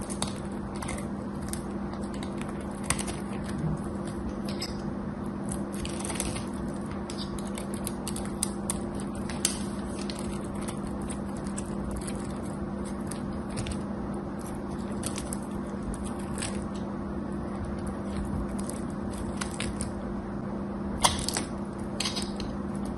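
A knife scrapes and shaves dry soap with crisp crackles.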